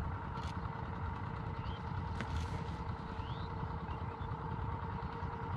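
A boat motor drones steadily close by.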